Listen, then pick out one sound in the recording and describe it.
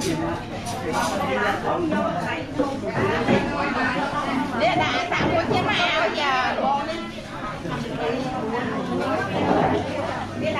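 A crowd of men and women chatter loudly all around in a busy room.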